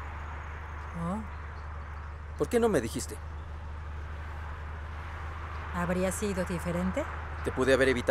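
A woman speaks with concern nearby.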